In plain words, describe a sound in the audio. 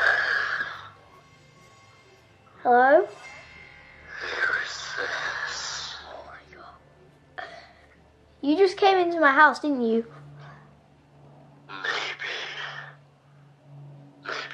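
A young boy talks excitedly and close by, with loud exclamations.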